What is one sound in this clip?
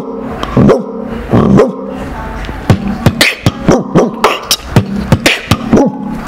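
A young man beatboxes close to a microphone, making punchy drum-like beats in a quick rhythm.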